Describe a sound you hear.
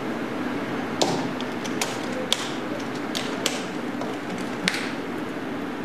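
Latches on a case snap shut with sharp clicks.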